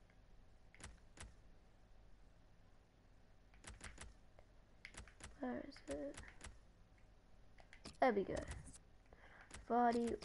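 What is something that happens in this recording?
A game menu gives short clicks as options are switched.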